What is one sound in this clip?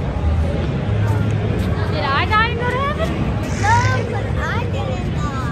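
A young girl speaks close by with animation.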